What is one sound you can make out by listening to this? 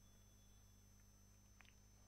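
A man gulps a drink from a can.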